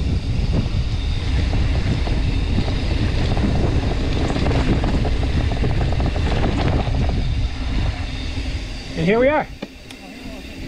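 Wind buffets loudly outdoors, then eases.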